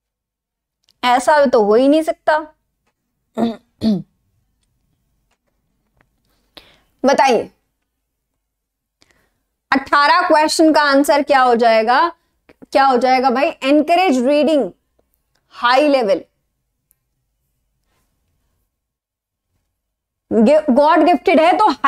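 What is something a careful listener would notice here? A young woman speaks clearly into a microphone, explaining in a lecturing manner, with pauses.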